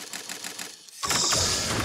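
Crystals shatter with a bright, ringing chime.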